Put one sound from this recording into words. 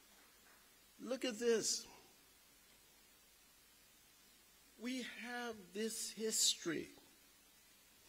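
A man speaks slowly into a microphone over loudspeakers in a large echoing hall.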